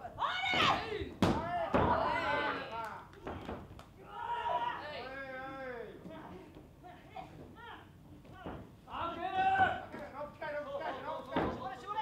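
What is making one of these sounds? Young women shout and strain loudly, heard up close.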